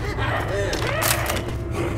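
A weapon swings and thuds against a body.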